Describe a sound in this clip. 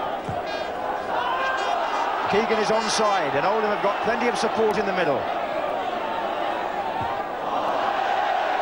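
A large crowd murmurs and roars outdoors.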